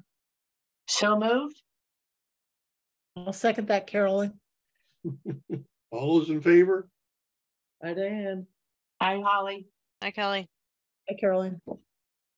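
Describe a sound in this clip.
Several voices take turns speaking calmly over an online call, in short phrases with pauses.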